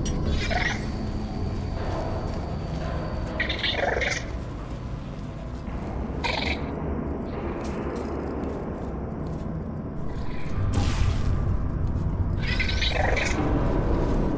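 A device fires with a sharp electric zap, again and again.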